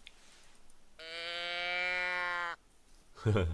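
A hunting call sounds a long, steady pitched note.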